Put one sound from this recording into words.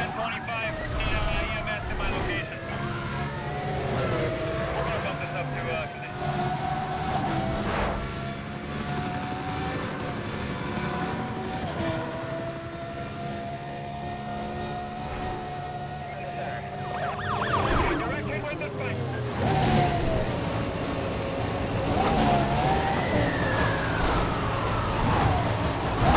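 Cars crash with loud metallic bangs.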